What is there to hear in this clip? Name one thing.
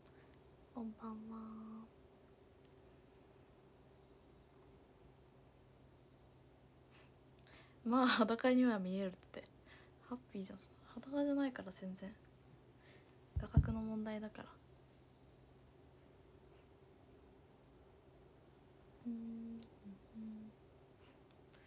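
A young woman talks softly and cheerfully close to a microphone, with pauses.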